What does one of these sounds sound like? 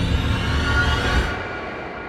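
A young woman gasps in fright.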